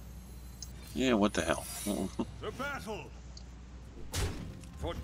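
A game figure strikes with a sharp magical impact.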